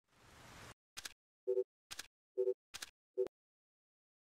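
Short electronic menu beeps sound several times.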